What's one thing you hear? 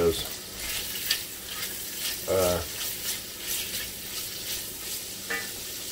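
A wooden spoon scrapes and stirs food in a pot.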